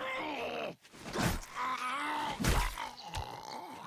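A blade stabs into flesh with wet thuds.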